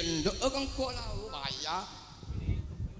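A man sings through a loudspeaker microphone outdoors.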